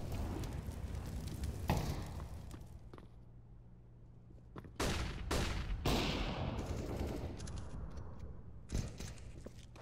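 Gunshots crack sharply, one after another, with a short echo.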